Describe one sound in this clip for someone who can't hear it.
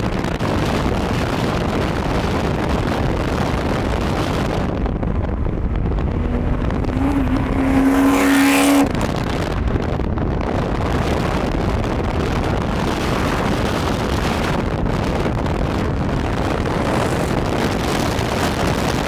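Wind rushes loudly past a moving car.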